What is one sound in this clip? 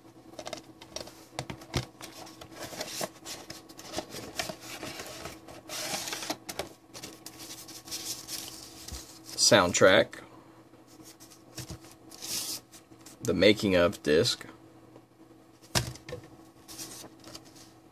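Plastic and paper rustle as they are handled close by.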